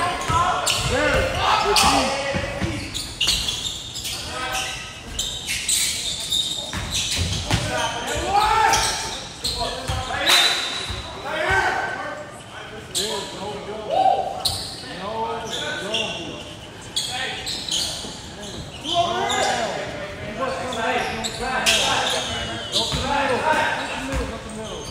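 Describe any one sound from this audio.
Young men shout and call out to each other across the echoing gym.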